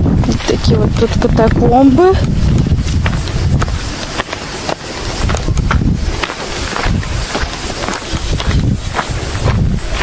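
Footsteps crunch on dry gravel and stones.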